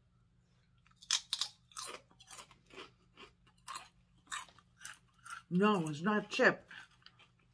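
A woman crunches a crisp chip loudly while chewing.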